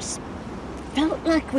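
A woman speaks briefly in a soft voice close by.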